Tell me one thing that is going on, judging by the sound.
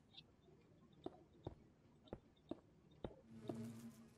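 Blocks are placed with soft, short clicks.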